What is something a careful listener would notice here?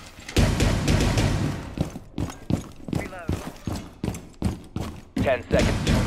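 Footsteps tap quickly across a hard floor.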